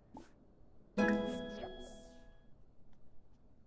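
A bright notification chime rings out and fades.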